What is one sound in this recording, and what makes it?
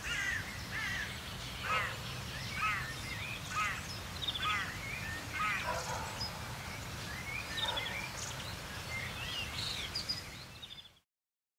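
Crows caw outdoors.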